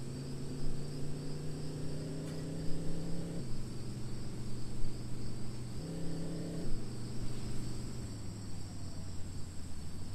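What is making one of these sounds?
A bus engine hums steadily, its pitch shifting as it speeds up and slows down.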